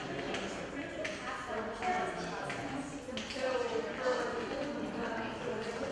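A young man talks nearby in an echoing hall.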